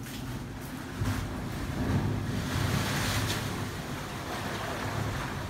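Waves surge and rush through an echoing rocky gap.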